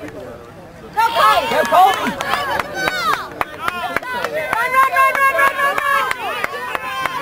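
A crowd on the sideline cheers and yells loudly.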